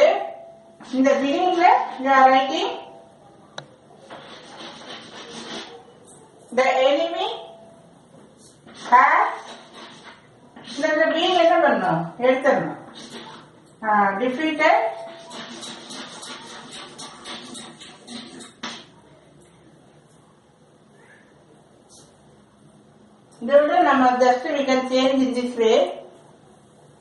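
A middle-aged woman speaks calmly and clearly, close by.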